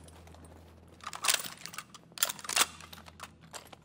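A rifle clatters and clicks as it is handled.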